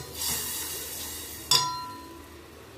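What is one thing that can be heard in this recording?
A metal spoon scrapes and clinks against a steel pot.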